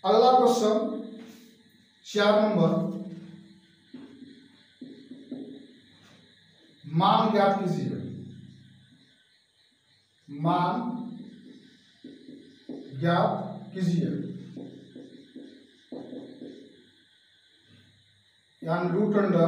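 A man speaks in loud, emphatic bursts close by.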